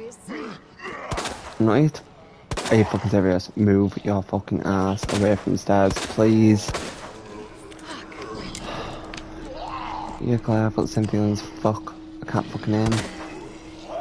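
Handgun shots ring out sharply, several times.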